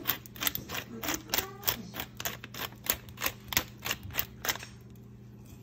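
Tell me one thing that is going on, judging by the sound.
A metal shaker rattles rhythmically.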